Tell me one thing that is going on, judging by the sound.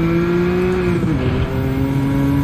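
A racing car engine drops in pitch sharply as a gear shifts up.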